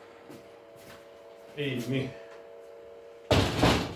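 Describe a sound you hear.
A door opens and closes.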